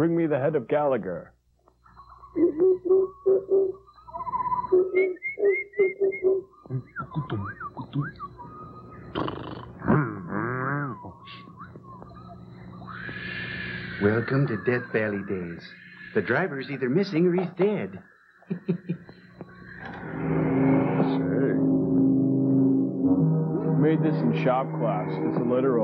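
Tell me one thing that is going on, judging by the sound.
A man jokes and quips with animation, close by.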